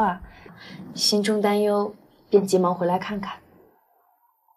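A second young woman answers softly.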